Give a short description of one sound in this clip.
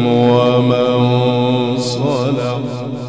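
An older man chants a long, sustained note through a microphone and loudspeakers.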